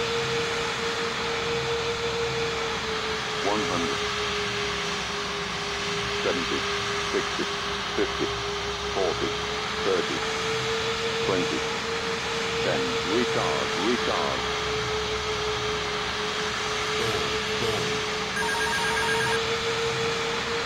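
Jet engines hum steadily.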